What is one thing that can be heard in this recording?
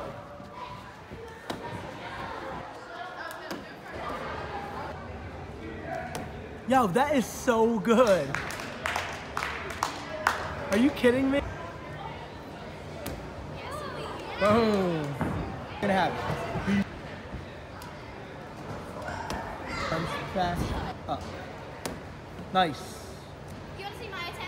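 A gymnast thuds onto a padded mat.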